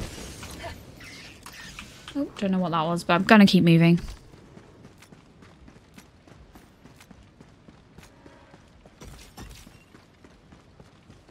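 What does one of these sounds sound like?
Footsteps crunch softly on a forest floor.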